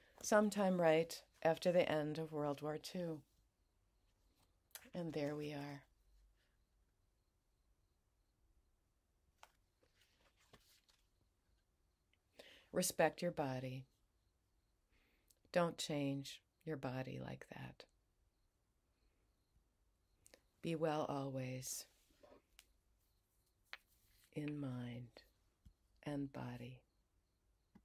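An older woman speaks calmly and close by, in short phrases with pauses.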